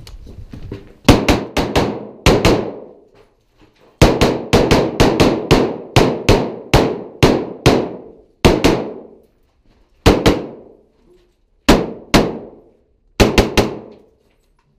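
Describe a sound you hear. A rifle fires rapid, sharp shots that echo.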